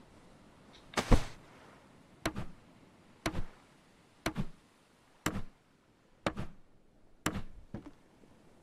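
Wooden planks knock and clatter into place.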